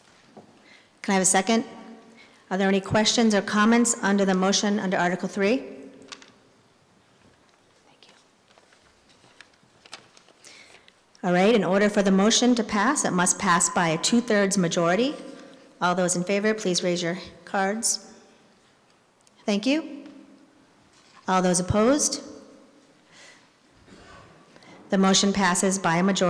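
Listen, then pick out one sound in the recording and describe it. A woman speaks steadily into a microphone over a loudspeaker in a large echoing hall.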